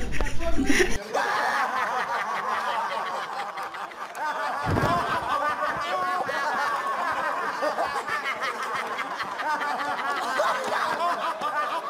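Several young men laugh loudly and heartily together.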